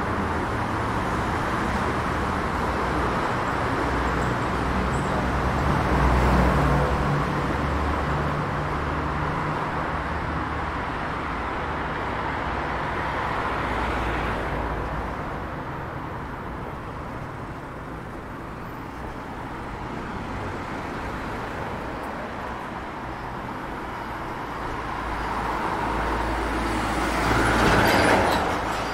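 Steady city traffic rumbles and hums nearby outdoors.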